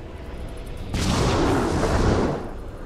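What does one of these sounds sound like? A magical whoosh swells and then fades.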